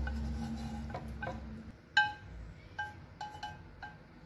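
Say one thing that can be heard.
Diced pork slides and tumbles from a metal pan into a pot.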